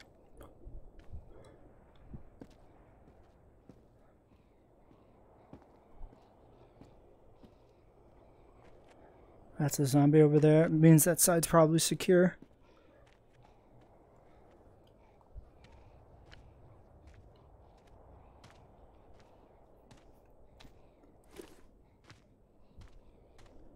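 Footsteps scuff slowly on hard pavement.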